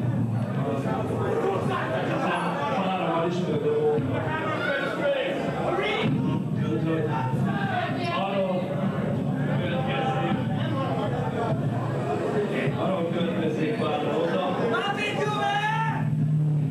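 A man sings loudly into a microphone over a live band.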